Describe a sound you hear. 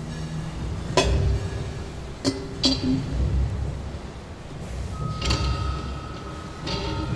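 Metal parts clink and tap against a cymbal stand.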